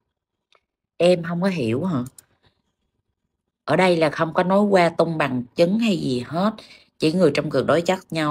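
A young woman speaks with feeling over an online call.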